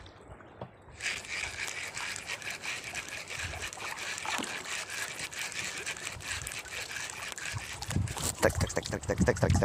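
A fishing reel whirs and clicks steadily as line runs out.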